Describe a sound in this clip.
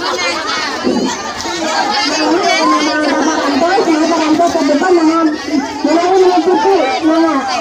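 A crowd of men and women chatter and call out outdoors.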